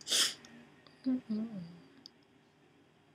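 A young woman murmurs briefly and quietly, close by.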